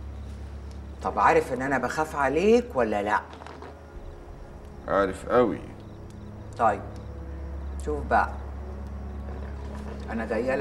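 A woman speaks in a low, tense voice close by.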